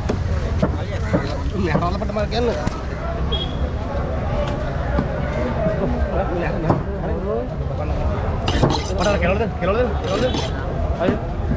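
A knife scrapes scales off a fish.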